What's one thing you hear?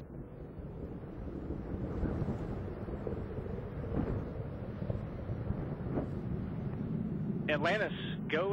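Rocket engines roar with a deep, steady rumble.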